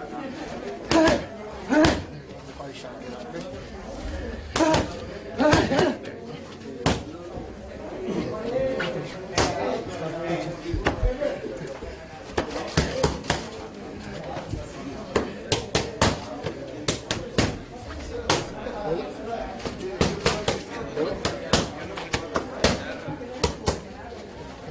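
Boxing gloves smack sharply against padded mitts in quick bursts.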